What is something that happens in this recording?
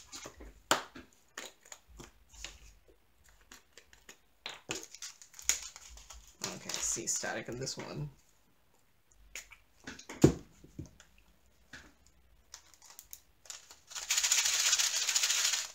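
Small plastic pieces click and tap together.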